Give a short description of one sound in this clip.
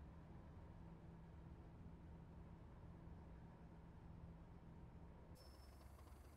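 A diesel locomotive engine drones steadily, heard from inside the cab.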